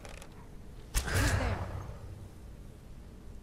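A creature bursts into crackling flames with a loud whoosh.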